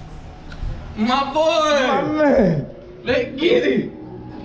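A young man shouts loudly with excitement.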